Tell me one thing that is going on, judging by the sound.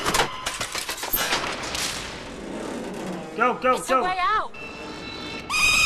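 A heavy metal door creaks and grinds open.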